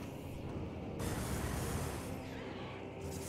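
Fire roars in a short burst.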